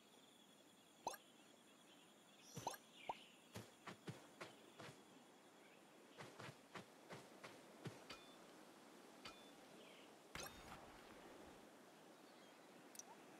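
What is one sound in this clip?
Short game chimes ring as items are picked up.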